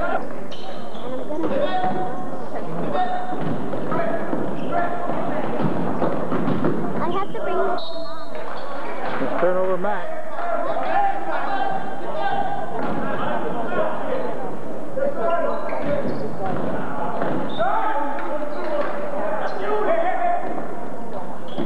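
Men, women and children in a crowd talk and call out nearby in a large echoing hall.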